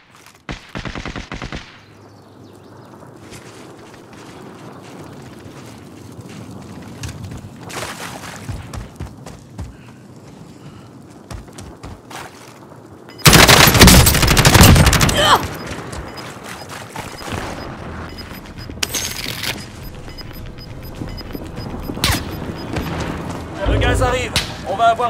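Footsteps run over dirt and gravel.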